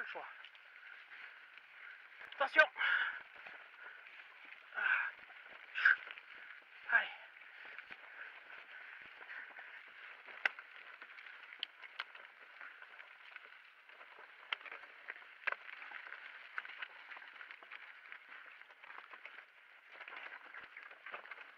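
Bicycle tyres rumble and crunch over a rough dirt trail.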